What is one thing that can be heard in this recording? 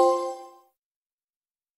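A short electronic chime rings.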